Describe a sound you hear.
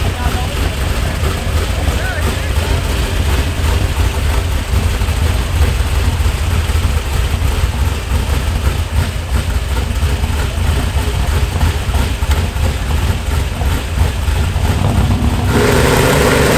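A pickup truck engine idles with a deep, steady rumble.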